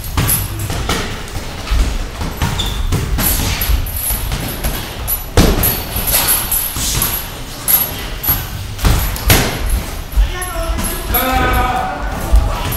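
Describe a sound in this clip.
Boxing gloves thump against pads in quick bursts.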